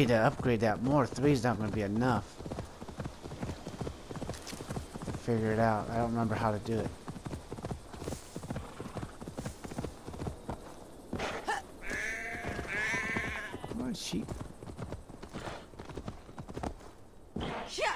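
A horse gallops, its hooves thudding on soft ground.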